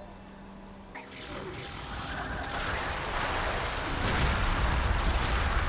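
Weapons clash and fire in a noisy fight.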